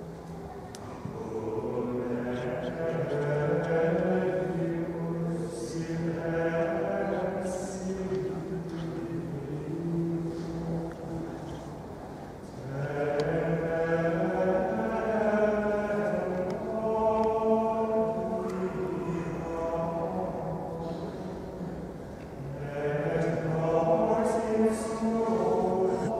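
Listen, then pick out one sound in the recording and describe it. A man chants slowly in a low voice in a large echoing hall.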